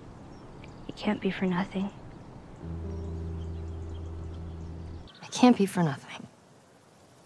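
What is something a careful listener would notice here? A young woman speaks quietly and calmly.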